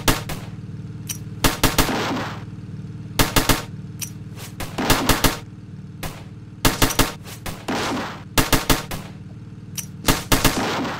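Guns fire in quick bursts of shots, over and over.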